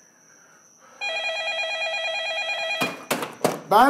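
A phone rings steadily.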